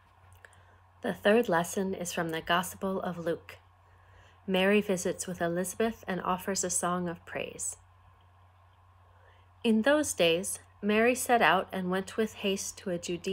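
A young woman talks calmly and closely into a microphone.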